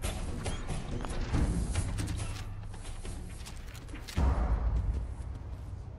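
A gun clicks and rattles as weapons are switched.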